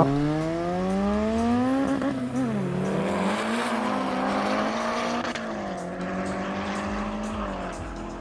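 A car engine revs hard and roars as the car speeds away.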